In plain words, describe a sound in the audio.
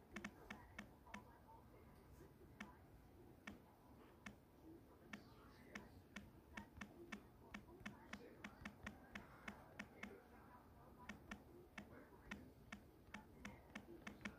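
A phone keyboard clicks with quick, uneven taps.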